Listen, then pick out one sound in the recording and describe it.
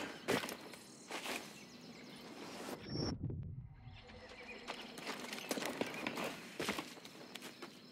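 Leaves and vines rustle as someone climbs.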